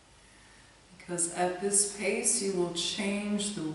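A woman speaks calmly and softly into a nearby microphone.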